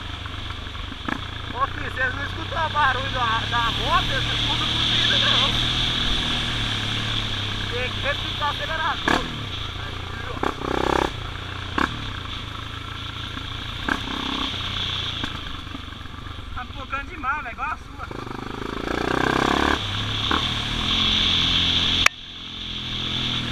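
A motorcycle engine drones steadily.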